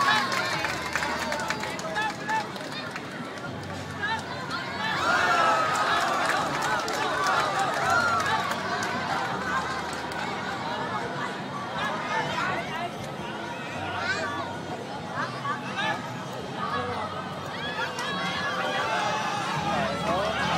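A crowd of spectators cheers and shouts nearby, outdoors.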